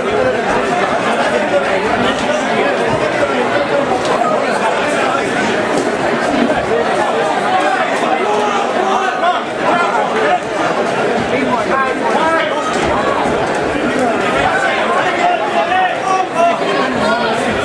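A crowd cheers and shouts loudly in a large echoing hall.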